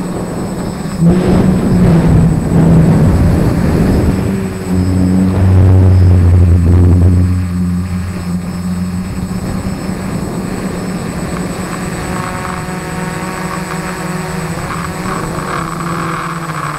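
A drone's propellers whine steadily, rising and falling in pitch.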